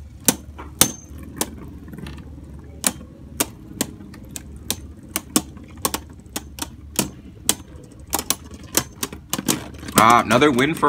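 Spinning tops clack against each other in a plastic arena.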